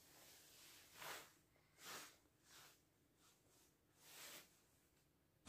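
A man chuckles softly close by.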